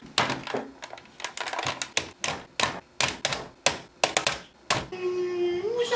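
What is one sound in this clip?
Buttons on a desk phone click as they are pressed.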